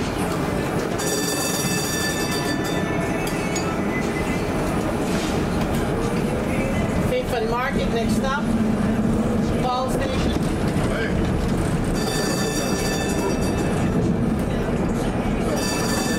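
A tram's motor whines as it pulls away and rolls along rails.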